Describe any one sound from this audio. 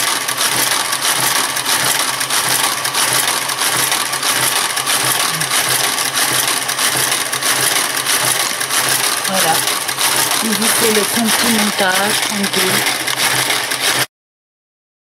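A knitting machine carriage slides and clatters along its needle bed.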